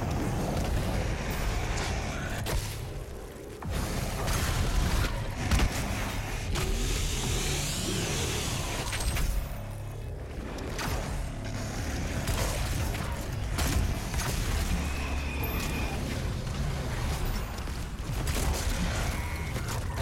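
A shotgun fires in loud, booming blasts.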